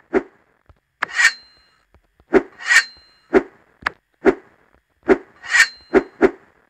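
A quick whoosh sounds as a small bomb is thrown.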